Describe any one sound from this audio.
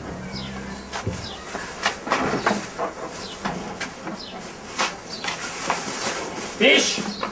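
Footsteps scuff across a hard tiled floor.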